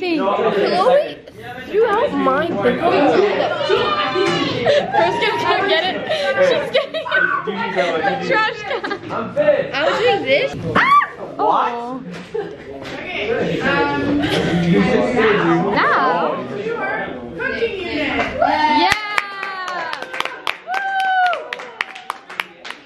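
Teenage girls talk and laugh with animation close by.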